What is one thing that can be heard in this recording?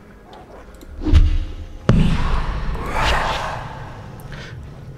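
A smoke bomb bursts with a loud hiss.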